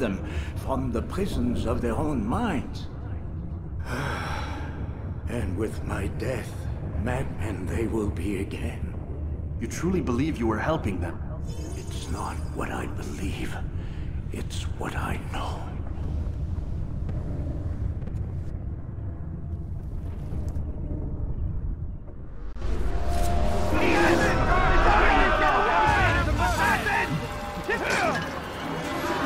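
A man talks casually into a microphone, close up.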